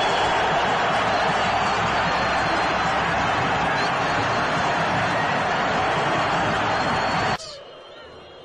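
A large crowd roars and cheers loudly in a stadium.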